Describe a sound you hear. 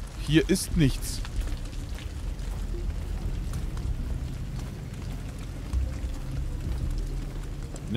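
Footsteps walk slowly on hard ground.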